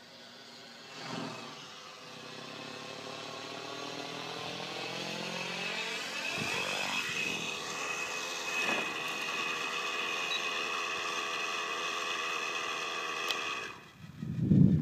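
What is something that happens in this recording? A model helicopter's rotor whines steadily nearby, rising in pitch as it comes closer.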